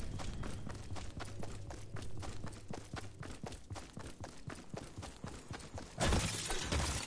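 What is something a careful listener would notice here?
Footsteps crunch quickly over rocky ground.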